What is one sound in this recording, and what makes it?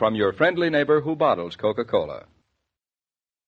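A man speaks expressively into a microphone, heard as an old radio recording.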